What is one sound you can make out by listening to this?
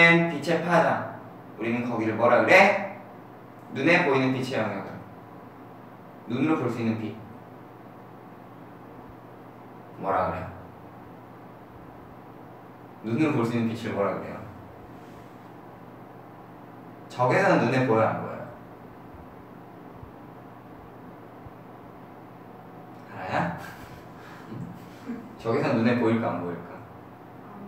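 A young man speaks calmly in short phrases with long pauses, close by.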